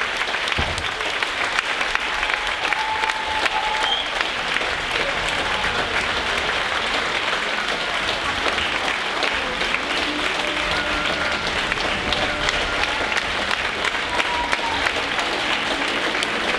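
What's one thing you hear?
Dancers' shoes tap and patter on a wooden stage.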